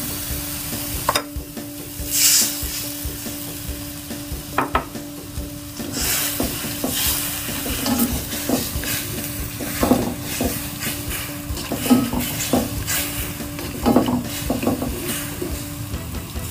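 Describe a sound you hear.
A spatula scrapes and clatters against a pan.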